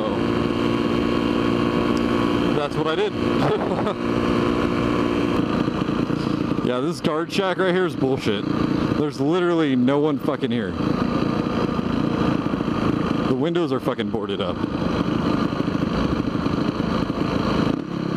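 A motorcycle engine hums and revs up and down while riding.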